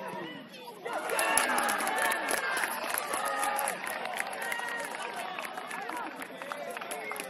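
A crowd of spectators nearby cheers and shouts excitedly.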